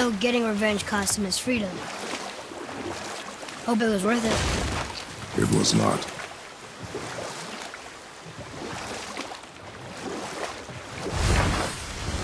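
Oars splash through water as a boat is rowed.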